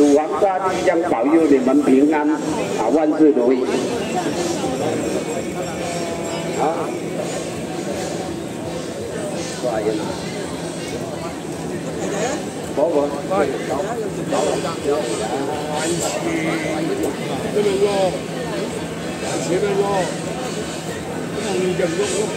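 A crowd of men chatters and calls out all around.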